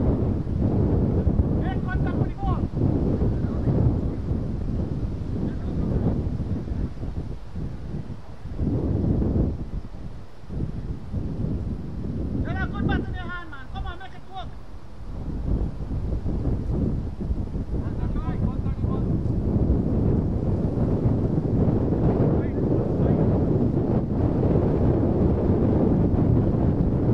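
Wind rumbles and gusts outdoors.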